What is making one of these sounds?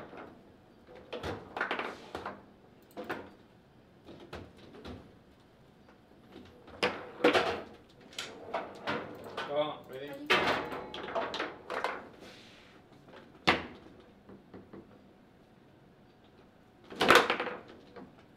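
Foosball rods rattle and thud as they are spun and slid.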